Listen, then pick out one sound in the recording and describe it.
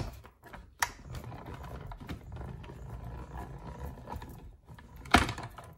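A hand-cranked machine rolls with a low, steady rumble.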